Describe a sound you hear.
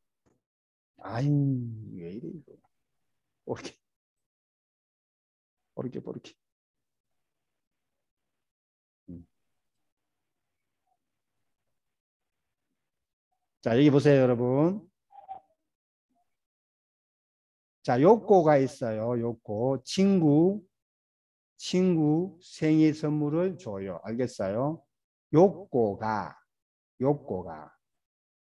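A middle-aged man speaks calmly, heard through a microphone on an online call, with pauses between phrases.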